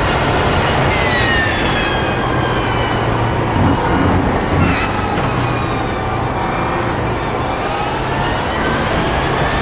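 A race car engine drops in pitch as the car brakes and shifts down.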